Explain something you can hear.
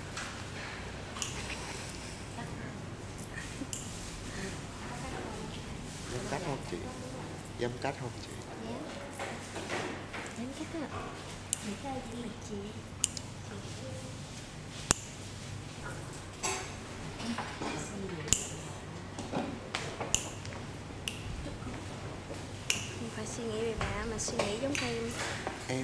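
A young woman talks softly close by.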